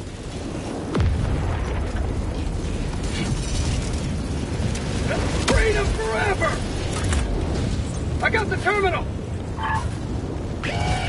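A fire roars loudly close by.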